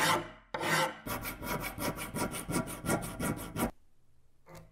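A thin metal rod scrapes quickly back and forth inside a metal bore.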